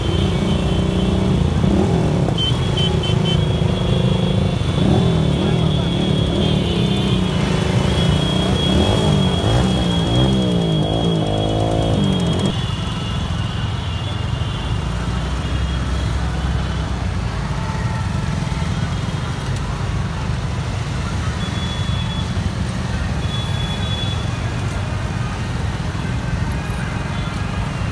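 A procession of small motorcycles rides along a road at low speed.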